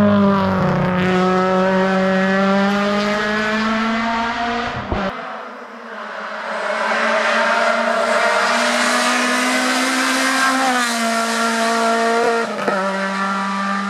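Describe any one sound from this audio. A racing car engine roars loudly at high revs, shifting gears as it speeds past.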